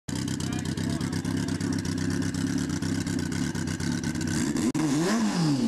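A motorcycle engine idles with a rough, throbbing rumble.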